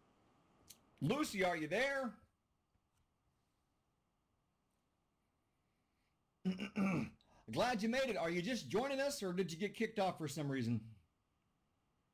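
A middle-aged man speaks calmly through an online call microphone.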